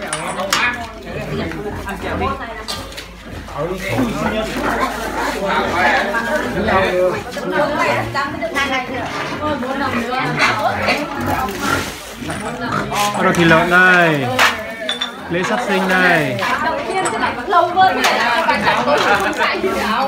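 Several women chatter and talk at once nearby.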